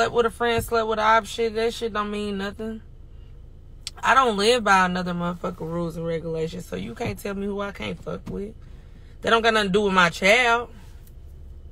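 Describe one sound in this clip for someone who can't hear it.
A young woman talks close to a phone microphone, in bursts with pauses.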